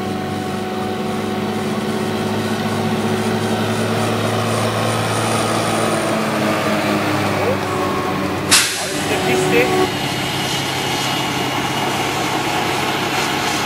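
A forage harvester's engine roars steadily close by.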